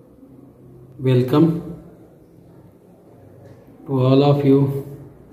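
A middle-aged man speaks calmly and close to a phone microphone.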